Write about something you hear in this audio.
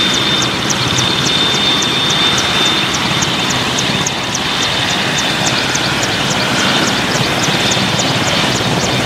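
A helicopter's turbine engine whines with a high, steady pitch.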